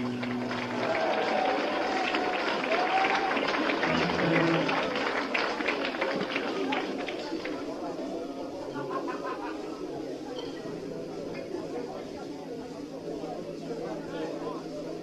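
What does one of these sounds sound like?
A young woman sings loudly into a microphone.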